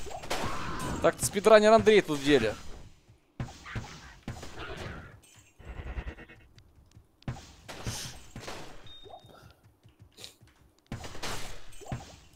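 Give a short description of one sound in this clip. Icy magic blasts burst with a crackling whoosh.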